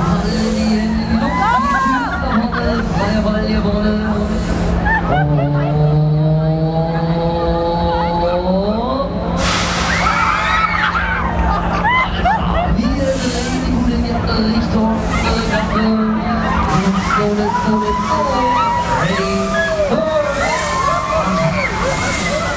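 A fairground ride whirs and rumbles as it swings riders around.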